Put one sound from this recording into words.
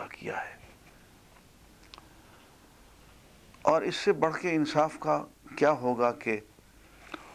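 An elderly man speaks calmly into a microphone, reading out.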